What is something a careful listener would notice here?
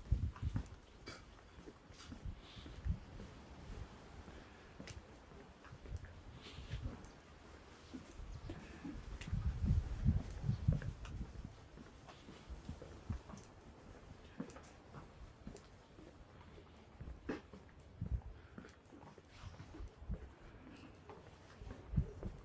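Footsteps tap steadily on a concrete path.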